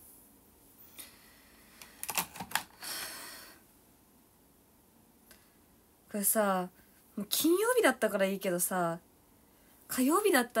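A young woman speaks in a high, lilting voice close to the microphone.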